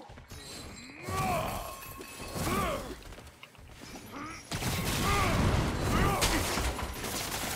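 Explosions boom and roar.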